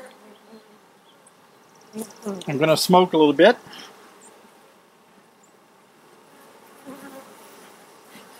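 Bees buzz softly around an open hive.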